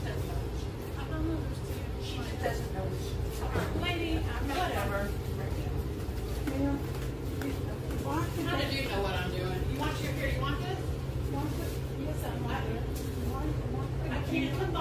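An elderly woman argues loudly nearby.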